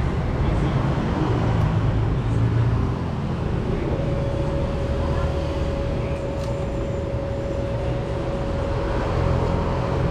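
A thin metal tool scrapes and clicks against a bicycle brake caliper.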